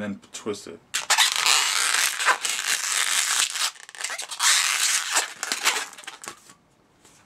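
Rubber balloons squeak and rub loudly as hands twist them.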